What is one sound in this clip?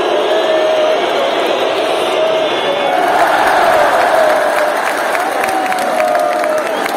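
A large crowd chants and sings loudly in an echoing arena.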